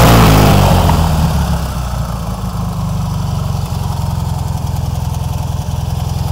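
A small engine idles with a steady rattling chug.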